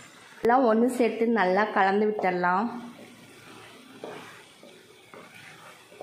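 A wooden spatula scrapes and stirs thick food in a pan.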